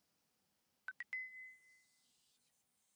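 A short electronic chime rings out from a device.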